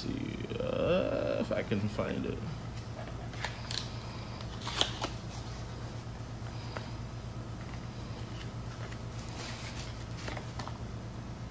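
Cardboard packaging scrapes and taps as hands open a box.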